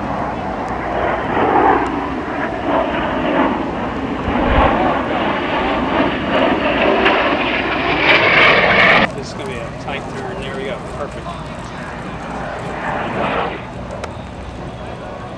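Jet engines roar loudly overhead.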